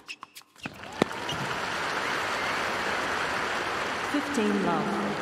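A crowd applauds and cheers in a large arena.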